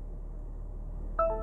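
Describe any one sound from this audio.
A car's electronic chime beeps briefly.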